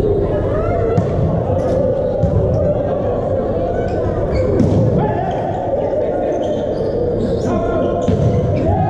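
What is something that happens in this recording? A volleyball is struck by hand in a large echoing hall.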